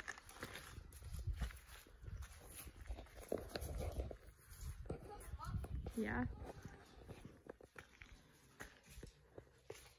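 Footsteps crunch and scrape on loose pebbles.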